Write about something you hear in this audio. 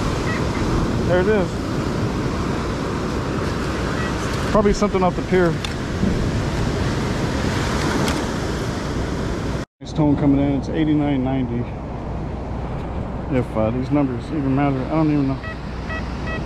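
A metal detector beeps with warbling tones.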